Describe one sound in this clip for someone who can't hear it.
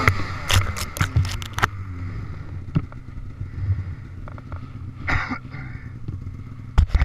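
Snowy branches brush and crackle against a snowmobile.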